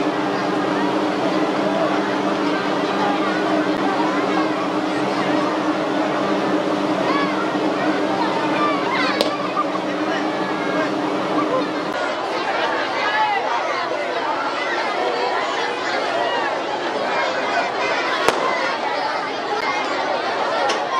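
A large crowd of men, women and children chatters and calls out outdoors.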